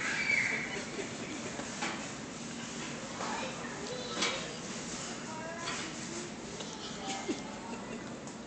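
A bicycle rattles as a small child handles it.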